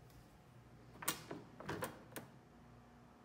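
A metal bin lid clanks open.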